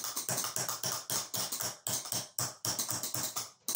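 A hammer taps rapidly on a metal plate.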